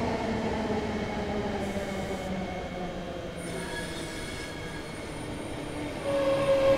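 A train engine hums steadily as it rolls along the tracks.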